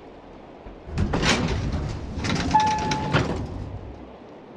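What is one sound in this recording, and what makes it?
Elevator doors rumble and slide open.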